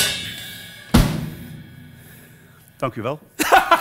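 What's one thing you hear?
A cymbal crashes and rings out.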